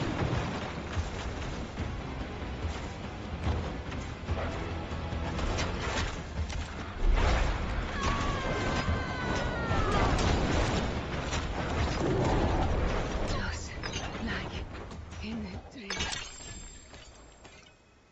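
Game combat effects crash and rumble with deep impacts.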